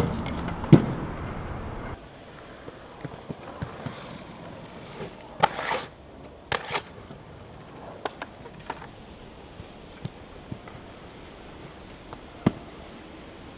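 Inline skate wheels roll and clack on concrete.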